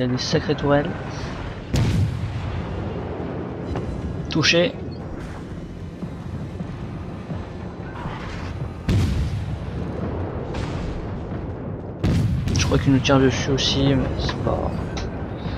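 Heavy guns fire with deep booming blasts.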